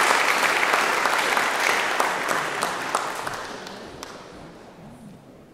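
An audience applauds, and the clapping slowly fades away.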